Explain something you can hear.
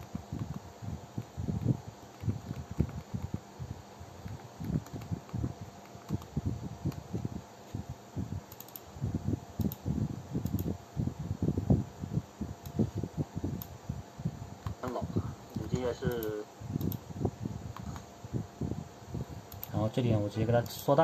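Fingers type on a small laptop keyboard.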